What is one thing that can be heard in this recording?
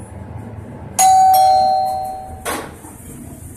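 An elevator chime rings on arrival.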